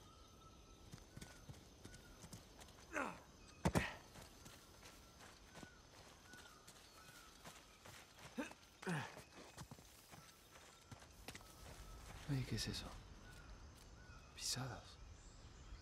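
A man's footsteps crunch over rock and brush.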